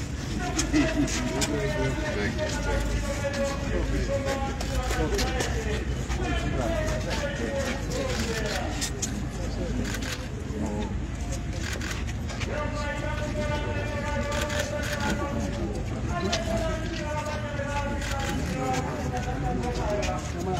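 Footsteps shuffle on hard ground.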